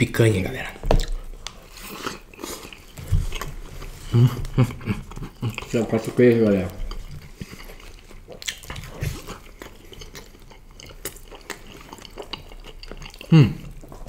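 Two young men chew food noisily.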